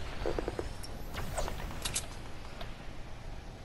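Wooden panels clack sharply into place several times.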